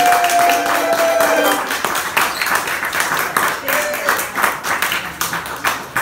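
An elderly woman claps her hands.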